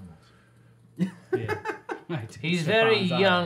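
Adult men laugh together close to microphones.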